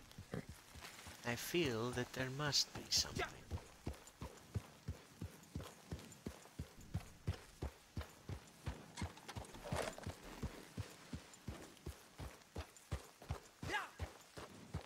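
Horse hooves thud steadily on grassy ground.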